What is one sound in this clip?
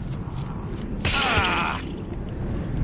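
A heavy blow lands with a wet splatter.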